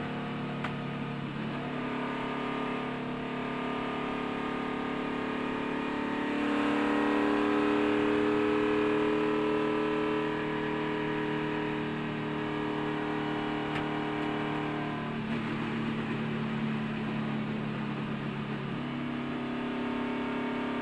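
A race car engine roars loudly at high speed, its pitch shifting up and down.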